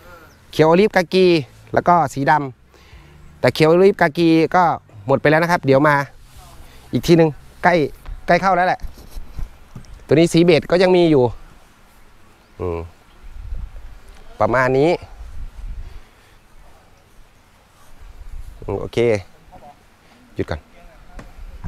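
A man talks calmly and clearly, close to a microphone.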